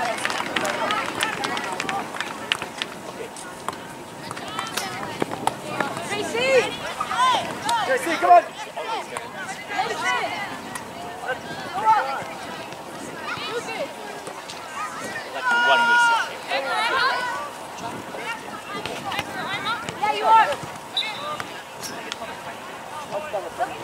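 Young players and spectators shout and call out across an open field outdoors.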